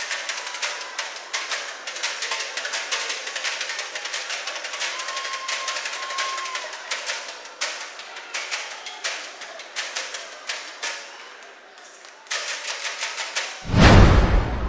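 Metal pots are drummed with sticks in a fast samba rhythm.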